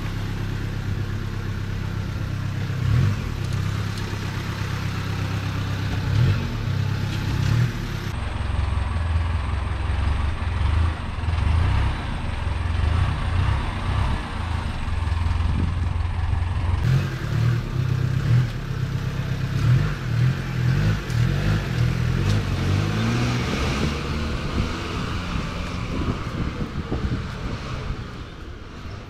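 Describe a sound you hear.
A bus engine idles with a low, steady rumble close by.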